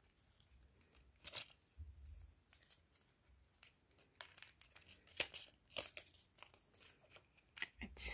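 Hands rustle and tap against a sheet of foam.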